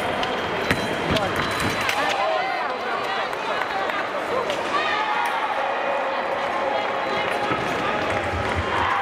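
A crowd murmurs in a large echoing hall.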